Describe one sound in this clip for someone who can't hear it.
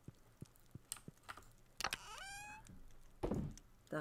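A short chime sounds as a game menu opens.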